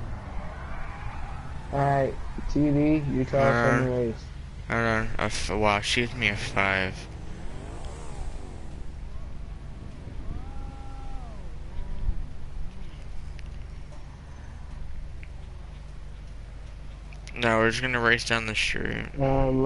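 A motorcycle engine idles steadily.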